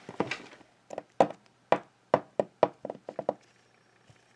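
Small plastic toys tap and knock on a hard surface.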